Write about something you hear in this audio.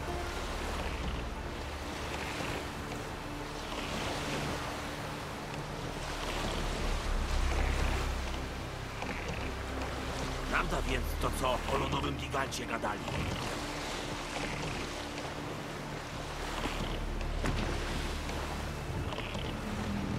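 Water splashes and laps against a small sailing boat's hull as it moves along.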